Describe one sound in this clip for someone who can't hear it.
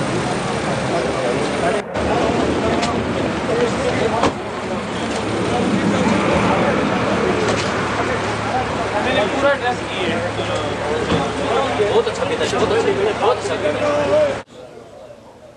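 A crowd of men talk loudly all at once, close by, outdoors.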